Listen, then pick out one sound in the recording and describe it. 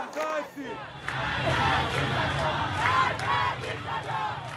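A crowd of women chants loudly outdoors.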